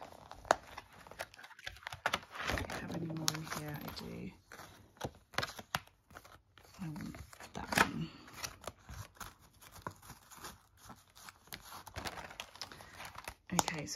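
Cards and paper rustle and tap as they are handled.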